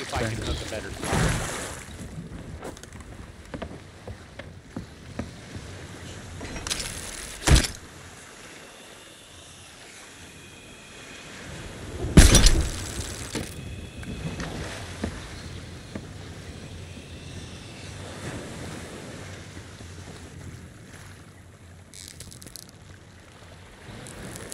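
Waves wash steadily against a wooden ship.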